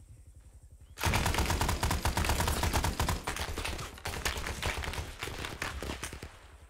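A machine gun fires rapid bursts up close.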